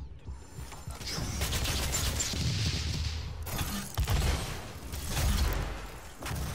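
A plasma rifle fires rapid buzzing bursts.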